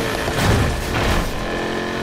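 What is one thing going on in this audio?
An exhaust backfires with a sharp pop.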